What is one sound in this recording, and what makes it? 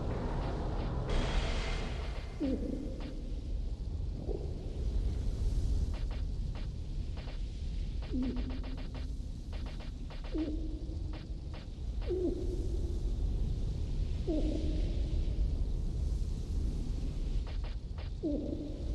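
Soft menu clicks tick quickly as a cursor moves through items.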